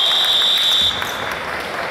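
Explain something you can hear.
A referee's whistle blows a long, sharp blast in a large echoing gym.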